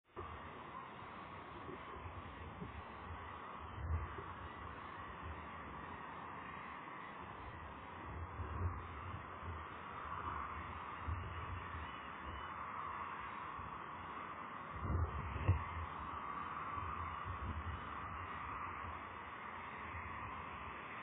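Wind blows outdoors, buffeting the microphone in gusts.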